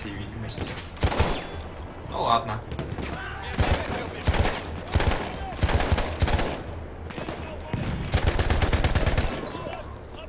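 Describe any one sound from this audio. A heavy machine gun fires in rapid bursts.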